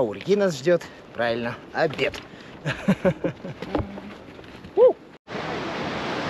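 A man talks cheerfully, close by.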